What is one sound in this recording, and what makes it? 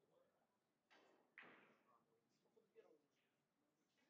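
A pool cue tip is chalked with a soft scraping.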